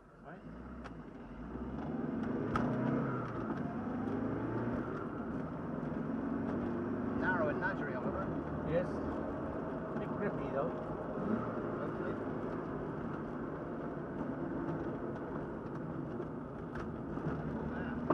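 Tyres roll over a paved path.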